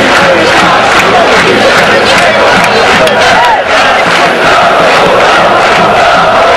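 A large football crowd chants loudly in an open-air stadium.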